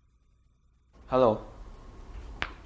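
A young woman says a short greeting.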